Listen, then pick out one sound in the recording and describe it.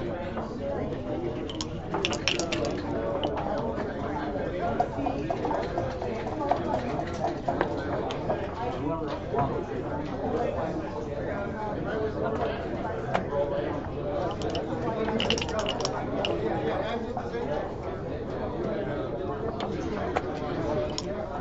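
Game pieces click as they are set down on a board.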